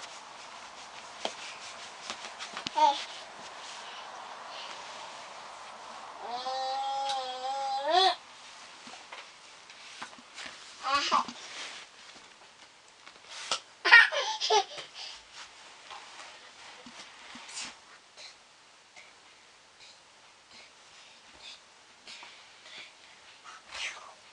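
Hands rub and knead softly against bare skin.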